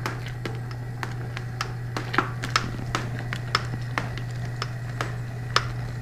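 Liquid pours and splashes into a pot.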